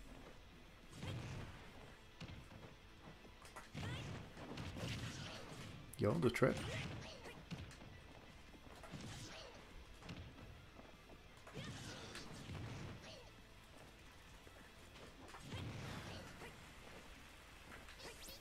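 Video game hits and explosions burst in quick succession.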